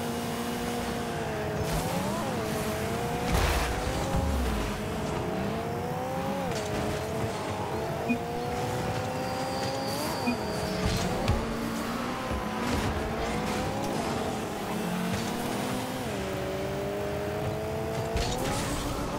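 A video game car engine hums, its pitch rising and falling with speed.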